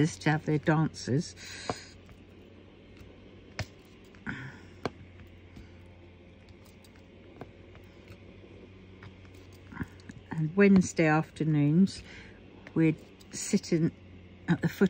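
A pen taps softly and clicks as it places tiny beads.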